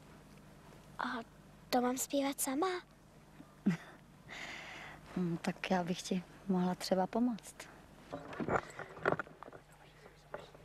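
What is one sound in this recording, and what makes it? A young girl talks.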